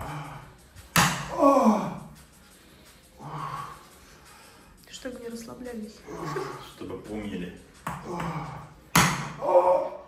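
A wooden mallet knocks sharply on a wooden cup.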